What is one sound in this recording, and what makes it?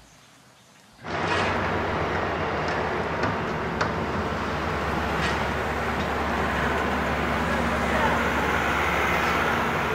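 A forklift engine rumbles steadily nearby.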